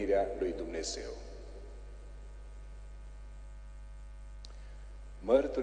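A man speaks calmly through a microphone in a reverberant hall.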